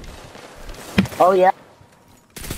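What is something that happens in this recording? A rifle fires in a video game.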